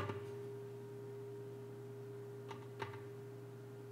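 A drum is struck with a beater a few times, and a low tone rings on after each beat.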